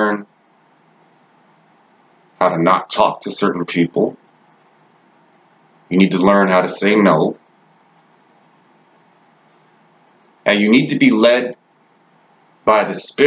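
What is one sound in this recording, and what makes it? A young man speaks calmly and close to the microphone, in short bursts with pauses.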